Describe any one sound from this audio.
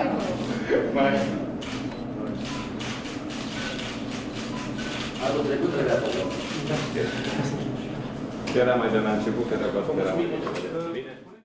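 Several men talk nearby in a room.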